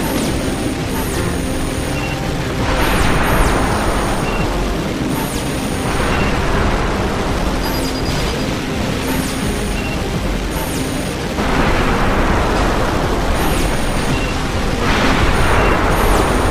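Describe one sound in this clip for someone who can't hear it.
Short electronic beeps chirp now and then.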